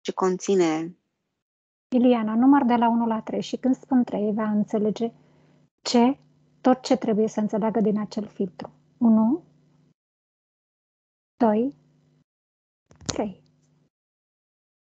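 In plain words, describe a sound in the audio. A woman speaks calmly and softly over an online call.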